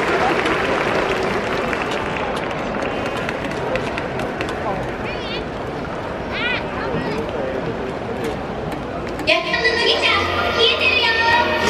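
A large stadium crowd murmurs and chatters in the distance.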